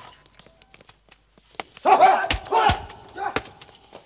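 Several men scuffle and grunt, close by.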